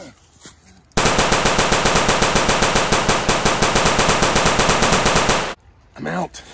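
A gun fires a long rapid burst of shots.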